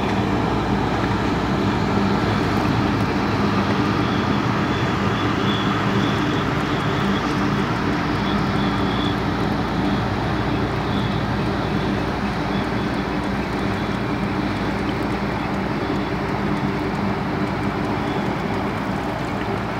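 An outboard motor hums steadily close by.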